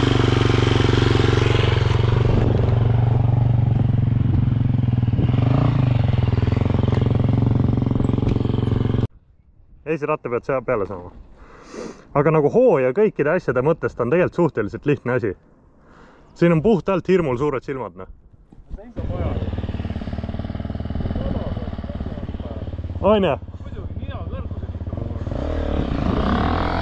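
A motorcycle engine roars up close, revving and idling.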